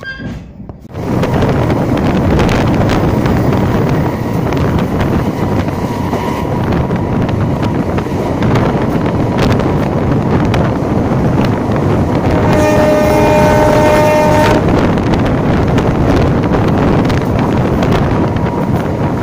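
Train wheels clatter loudly on the rails.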